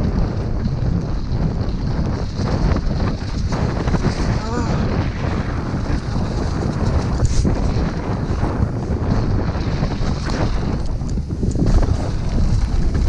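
Tyres rumble and crunch on a dirt trail.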